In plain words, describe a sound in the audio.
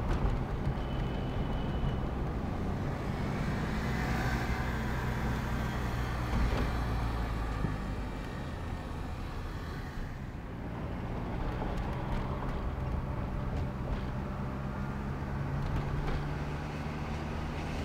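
A car engine hums steadily from inside the car as it drives through traffic.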